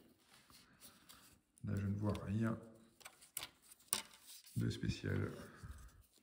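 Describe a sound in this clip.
Small electronic parts click and tap softly as they are handled.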